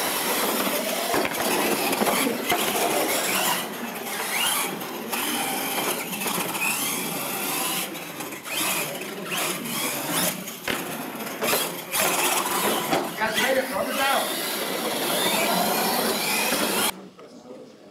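A radio-controlled monster truck races across a concrete floor.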